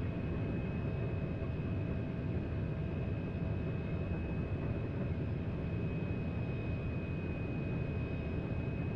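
An electric motor whines with a steady high hum.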